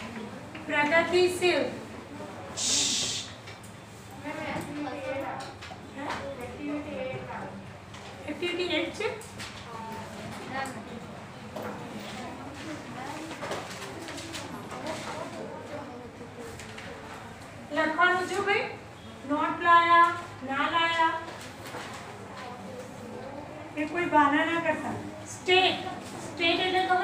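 A woman speaks with animation to a group.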